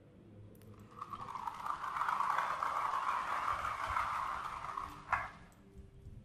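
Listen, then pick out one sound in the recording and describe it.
A toy rooster's wheels whir as it rolls across a hard floor.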